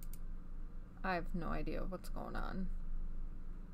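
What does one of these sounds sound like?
A young woman speaks briefly and softly into a headset microphone.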